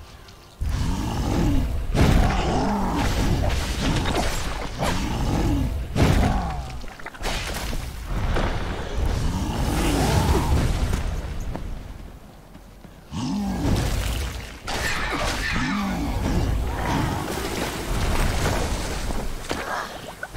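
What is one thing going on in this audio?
Sword slashes and magic blasts crash in a video game battle.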